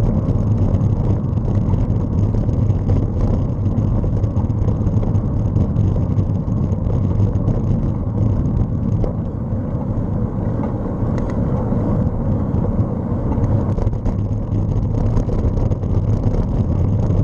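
Wind buffets and rumbles loudly against a moving microphone.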